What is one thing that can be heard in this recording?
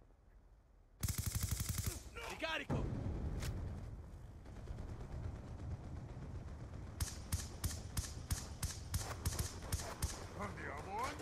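Rapid bursts of gunfire crack out.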